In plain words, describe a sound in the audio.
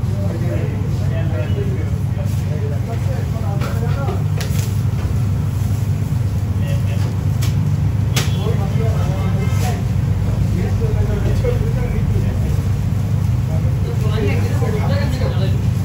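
Patties sizzle on a hot griddle.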